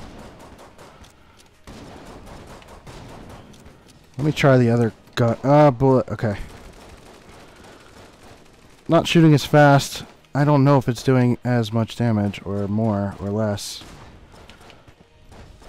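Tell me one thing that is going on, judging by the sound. Guns fire rapid bursts of shots.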